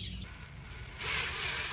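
A cordless drill whirs as it drives a bolt.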